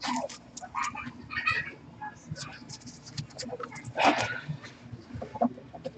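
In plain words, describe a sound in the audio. Hands shuffle a stack of cards with a soft rustle.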